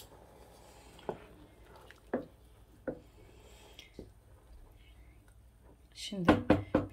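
A wooden spoon stirs soup in a metal pot.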